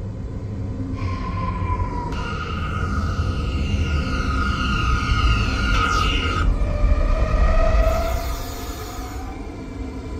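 Train brakes squeal and whine as the train slows.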